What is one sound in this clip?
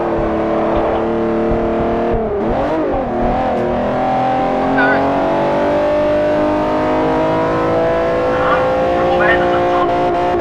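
A racing car engine drones loudly, dips briefly as it shifts gear, then climbs slowly in pitch.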